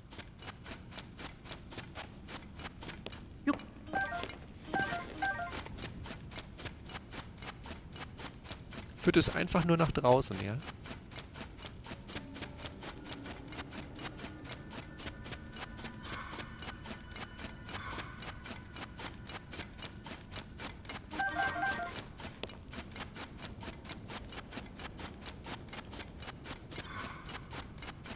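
Footsteps run steadily over a stone floor.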